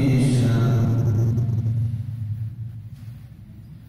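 A man chants a long, drawn-out note through a microphone, and the note fades away in an echoing hall.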